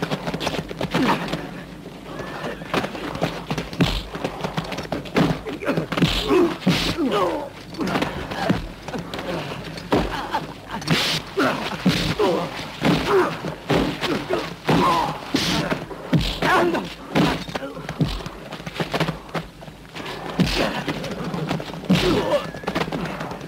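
Punches land with hard thuds.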